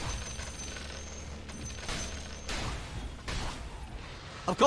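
Magic spells crackle and blast in a fight.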